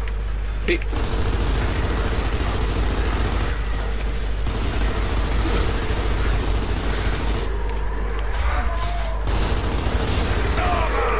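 A rifle fires in rapid, rattling bursts.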